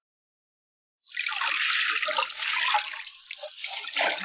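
Water splashes and drips as a cloth is wrung out over a basin.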